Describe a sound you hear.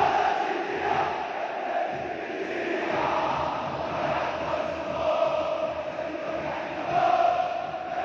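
A huge stadium crowd chants and sings loudly in unison.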